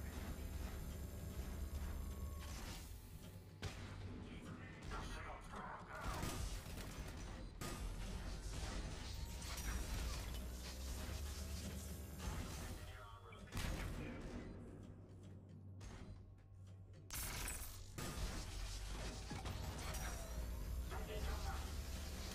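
Energy beams crackle and hum as a weapon fires.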